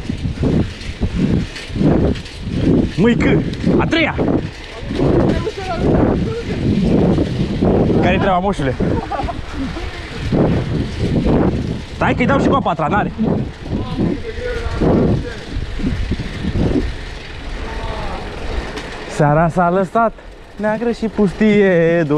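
Wind rushes past outdoors.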